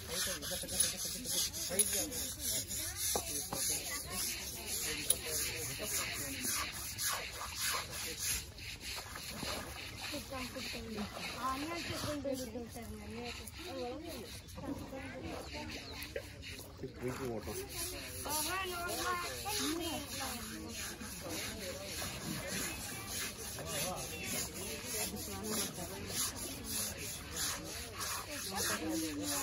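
Water splashes and laps in shallow water.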